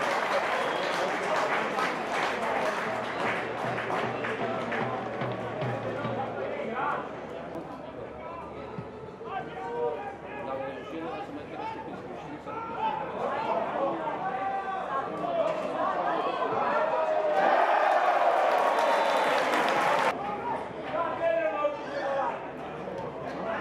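A sparse crowd murmurs and calls out in an open stadium.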